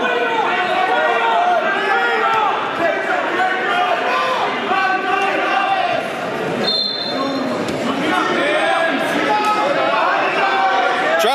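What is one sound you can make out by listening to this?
A crowd shouts and cheers loudly in an echoing gym.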